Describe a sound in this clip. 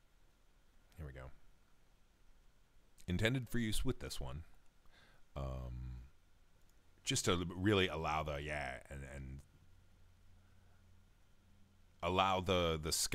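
A man talks casually into a close microphone.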